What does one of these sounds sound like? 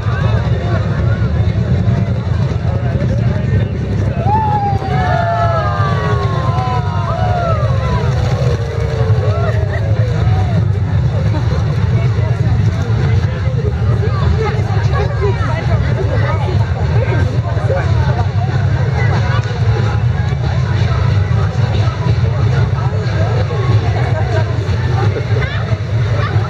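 A crowd chatters and murmurs outdoors all around.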